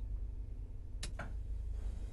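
A button clicks sharply.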